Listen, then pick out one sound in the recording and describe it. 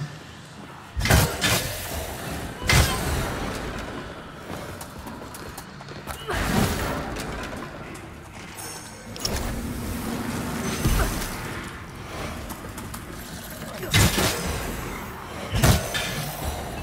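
Heavy weapon blows strike with loud thuds.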